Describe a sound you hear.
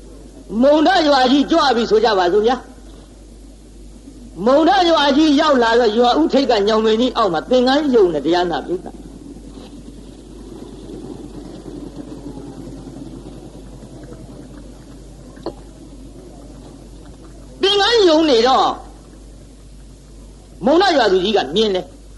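An elderly man chants in a steady, sing-song voice.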